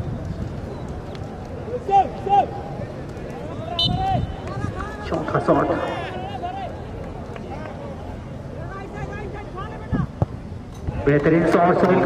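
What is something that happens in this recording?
A crowd of people chatters and calls out outdoors.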